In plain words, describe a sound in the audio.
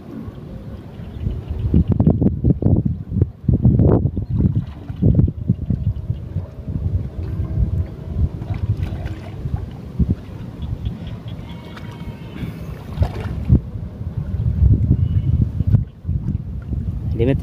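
Shallow water swishes and splashes as a net is dragged through it.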